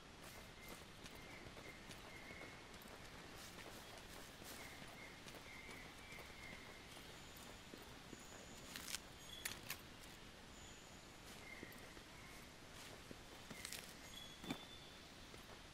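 Footsteps crunch on dirt and through leafy plants.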